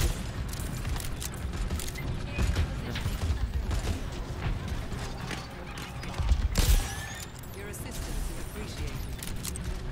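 Sharp shots from a game's gun crack in quick bursts.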